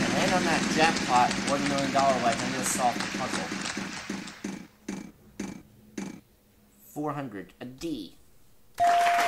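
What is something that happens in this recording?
A prize wheel spins with rapid ticking clicks that slow down and stop.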